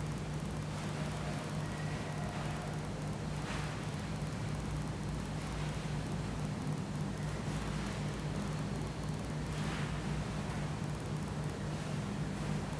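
Hands and feet brush across artificial turf.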